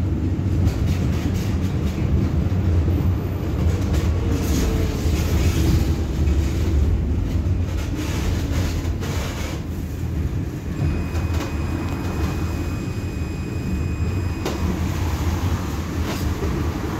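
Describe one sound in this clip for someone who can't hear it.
A tram rumbles steadily along its rails from inside.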